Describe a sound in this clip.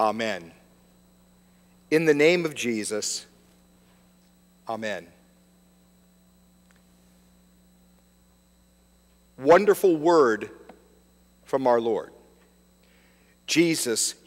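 An older man speaks slowly and calmly in short phrases with long pauses, heard through a microphone.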